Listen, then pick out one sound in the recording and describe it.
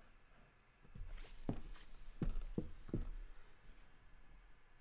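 Paper rustles and thumps as a sheet is shifted.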